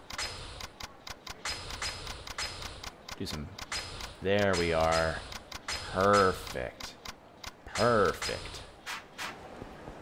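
Menu clicks and beeps sound in quick succession.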